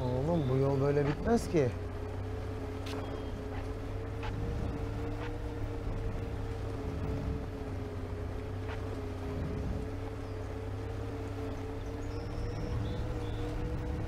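A bus engine hums steadily.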